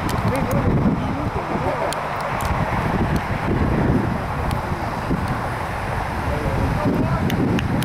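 Wind blows steadily outdoors across an open field.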